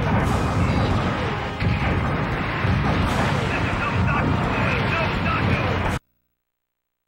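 Video game battle sounds of robots firing and explosions play loudly.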